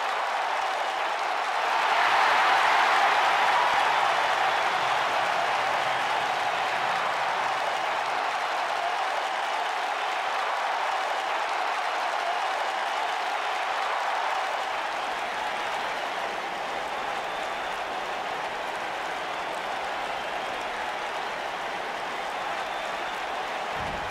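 A large crowd cheers and roars steadily, swelling loudly early on.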